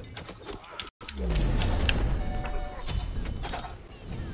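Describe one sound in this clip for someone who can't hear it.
A magic spell bursts with a loud whoosh.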